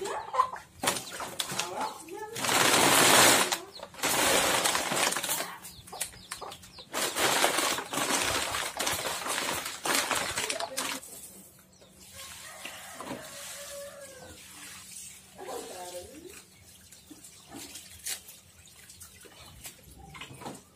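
Wire scrap rustles and scrapes as it is handled.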